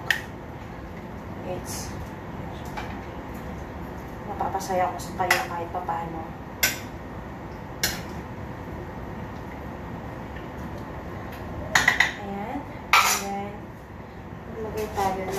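Metal utensils clink and scrape against pans.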